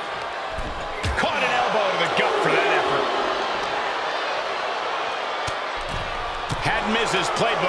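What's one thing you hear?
Blows thud as wrestlers grapple.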